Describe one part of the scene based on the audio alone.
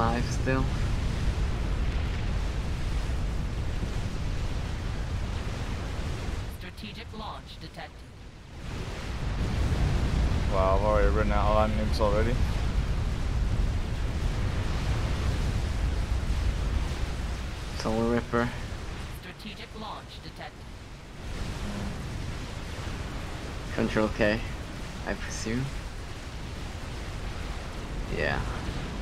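Explosions boom and rumble in a game battle.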